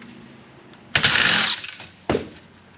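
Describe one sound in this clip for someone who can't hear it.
A cordless drill whirs, backing out a screw.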